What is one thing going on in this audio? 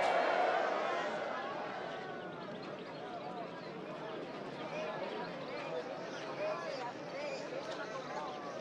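A crowd of voices calls out from a short distance outdoors.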